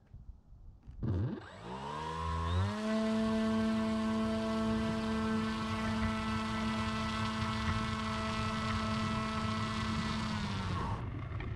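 A small electric motor whines up to speed and holds a steady pitch.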